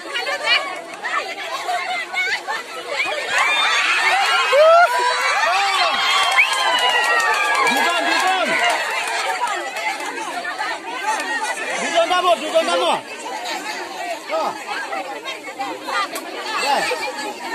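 A crowd of women chatter, shout and laugh loudly outdoors.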